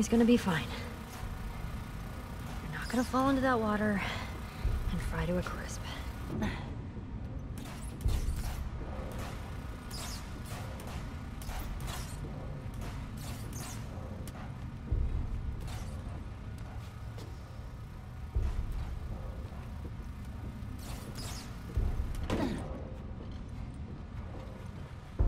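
Footsteps clang on hollow sheet metal.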